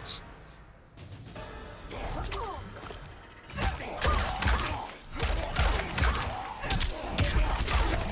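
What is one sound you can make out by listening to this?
Fighters strike each other with heavy blows.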